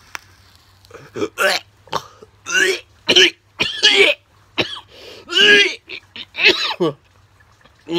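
A man coughs hard, close by.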